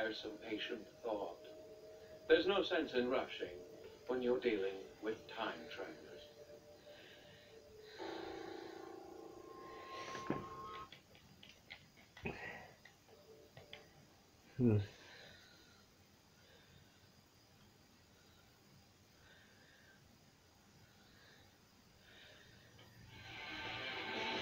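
A television plays game music and sound effects through its speakers.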